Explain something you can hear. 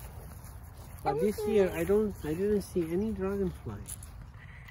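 A young girl talks close by in a high, sing-song voice.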